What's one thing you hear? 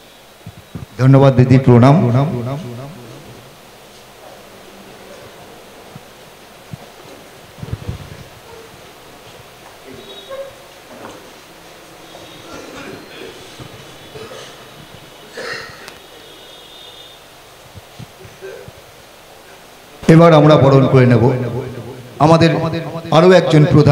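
A man speaks loudly into a microphone over a loudspeaker.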